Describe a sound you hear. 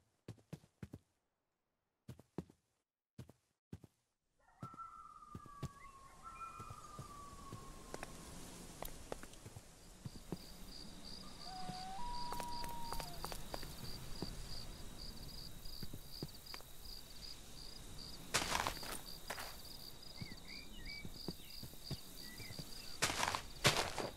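Footsteps tread softly on grass and gravel.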